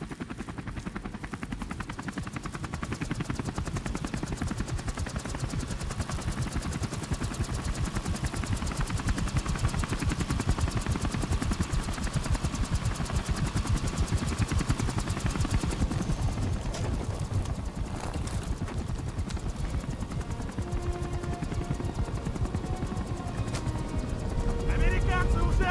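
A helicopter's rotor thumps.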